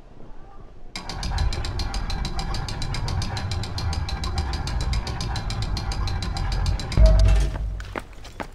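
A heavy stone slab grinds and rumbles as it moves.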